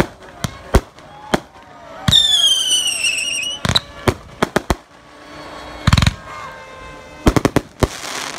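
Fireworks bang and crackle in the night sky.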